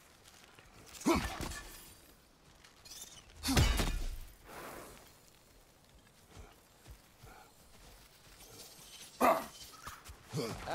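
A magical energy beam hums and whooshes in sudden bursts.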